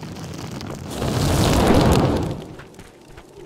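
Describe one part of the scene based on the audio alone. A fiery spell bursts with a roaring whoosh.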